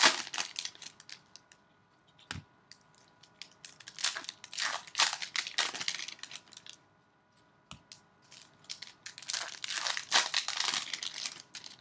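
Gloved hands crinkle and tear open a foil wrapper.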